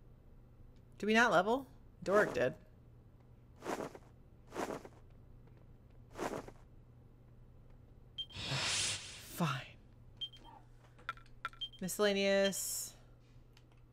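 A young woman talks casually into a microphone close by.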